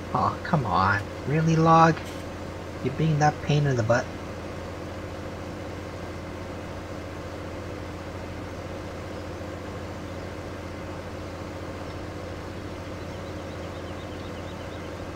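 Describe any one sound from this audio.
A wood chipper engine hums steadily.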